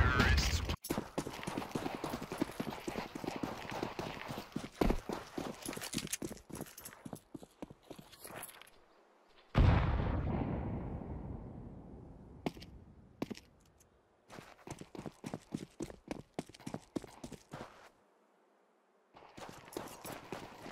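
Footsteps run across stone pavement.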